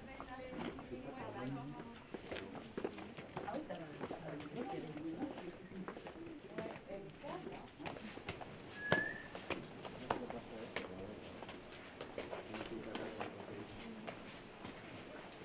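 Footsteps tap on stone paving.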